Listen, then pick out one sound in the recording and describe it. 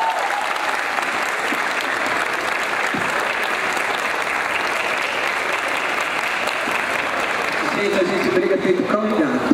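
A crowd cheers loudly in a large space.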